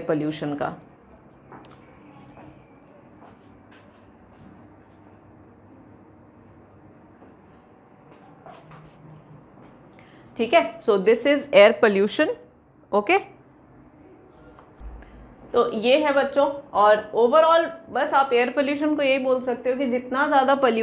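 A young woman speaks calmly into a close microphone, explaining.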